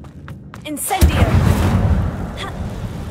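A magical burst crackles and roars loudly.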